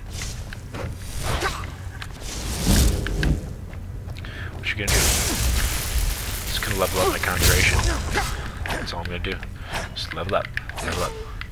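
Magic spells crackle and hiss loudly.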